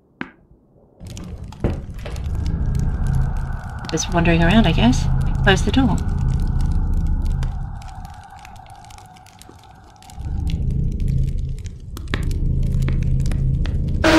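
A fire crackles and roars in a fireplace.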